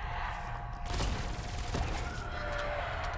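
An electric weapon crackles and zaps with a loud burst.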